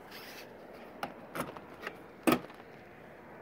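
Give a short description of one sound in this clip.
A hand taps and rubs on a car door panel.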